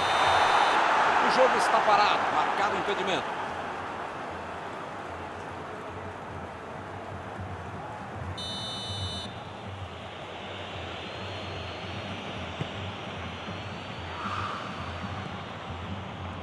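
A large stadium crowd roars loudly, then settles into a steady murmur.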